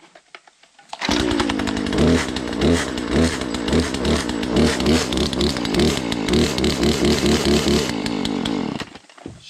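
An electric chainsaw whirs loudly and its motor pulses as it runs.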